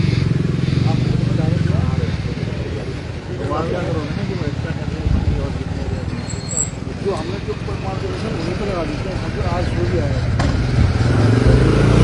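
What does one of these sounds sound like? A middle-aged man talks with animation nearby.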